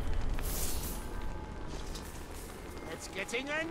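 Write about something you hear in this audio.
Flames roar and crackle.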